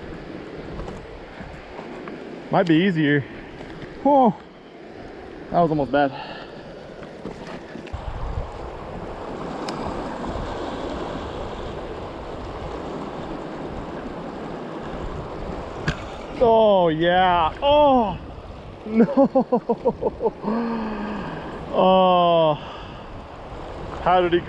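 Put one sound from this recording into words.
A fast river rushes and churns nearby.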